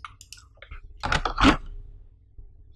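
A mouse is set down in a plastic tray with a knock.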